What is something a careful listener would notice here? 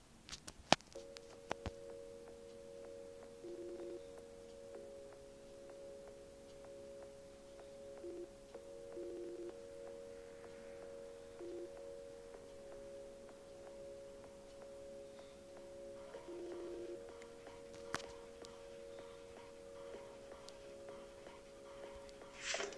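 Soft, slow game music plays.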